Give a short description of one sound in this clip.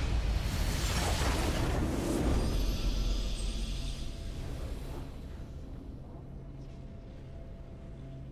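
A triumphant game fanfare swells.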